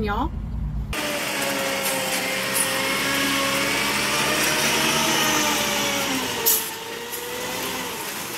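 A concrete mixer truck's engine hums steadily.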